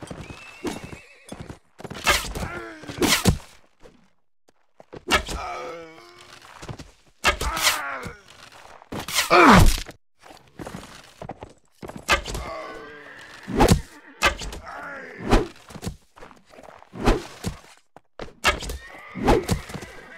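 A bow twangs as an arrow is loosed.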